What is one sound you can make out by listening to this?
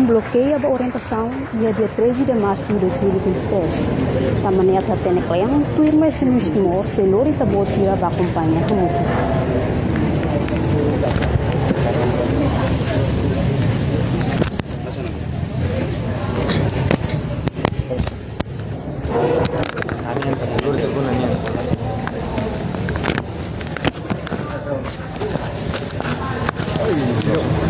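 A crowd of young men murmurs and chatters in the background.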